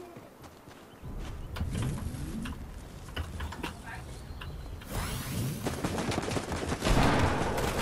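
A bin is rummaged through with rustling and clattering.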